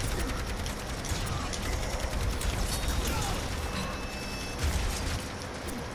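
Explosions boom from a video game.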